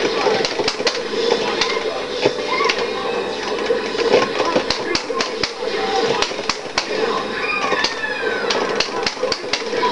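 Video game fight sounds crack and thud with hits and blasts.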